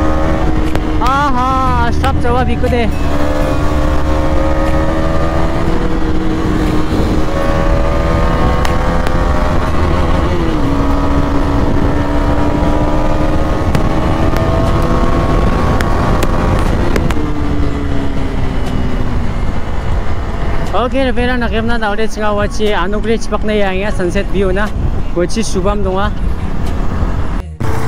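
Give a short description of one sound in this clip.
A motorcycle engine hums and revs up and down as it rides.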